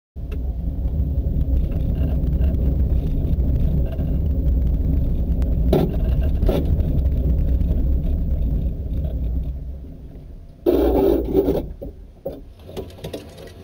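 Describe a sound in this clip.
A helicopter engine and rotor drone loudly and steadily from inside the cabin.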